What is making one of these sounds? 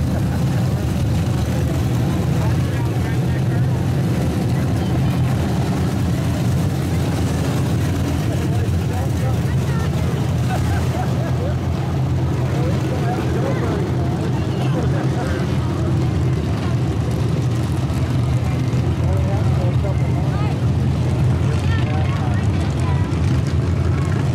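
Loud car engines roar steadily as cars speed past close by.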